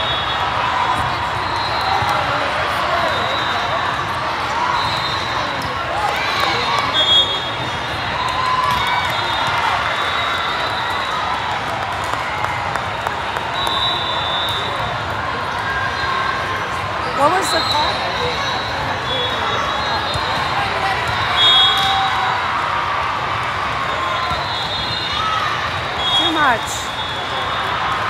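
A crowd chatters and calls out throughout a large echoing hall.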